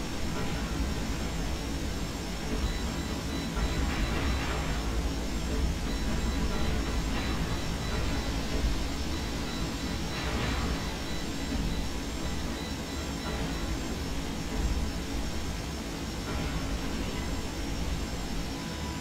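A low mechanical rumble fills a walking mech's cockpit.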